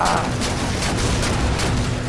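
A weapon fires rapid energy bursts.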